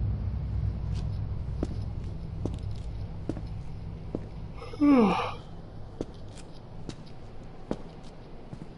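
Footsteps splash slowly on a wet street.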